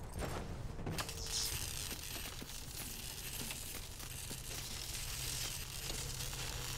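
Electricity crackles and sizzles loudly.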